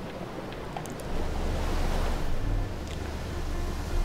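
Rushing water churns and splashes nearby.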